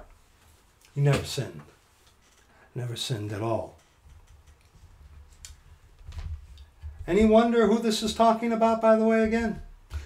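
A middle-aged man speaks calmly and close by, in short bursts with long pauses.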